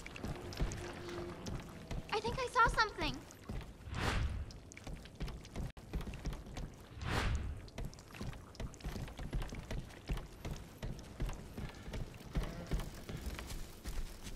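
Footsteps thud on creaking wooden floorboards.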